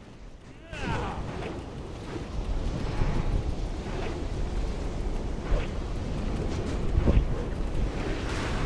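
Magic spells burst with fiery impacts again and again.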